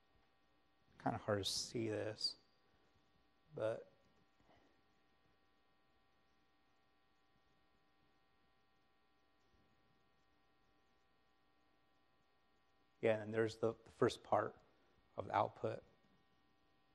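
A man speaks calmly through a microphone in a large room, in short bursts with pauses.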